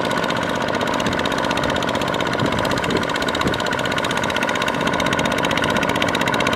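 A small diesel engine chugs steadily and loudly.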